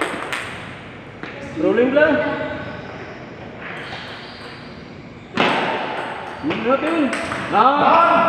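A ping-pong ball clicks off paddles and the table.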